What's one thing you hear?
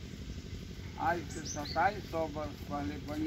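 A man talks calmly at a distance.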